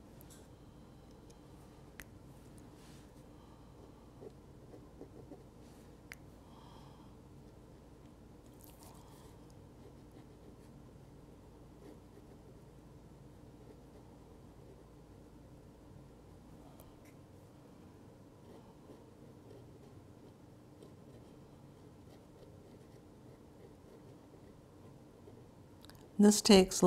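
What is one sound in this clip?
A wooden stick taps and scrapes softly on paper.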